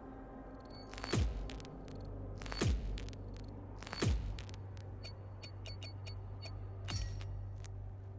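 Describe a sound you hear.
Short swooshing interface sounds ring out as awards pop up one after another.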